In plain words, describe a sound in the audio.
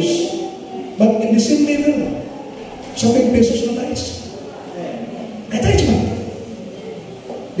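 A man preaches with animation through a microphone and loudspeakers in an echoing hall.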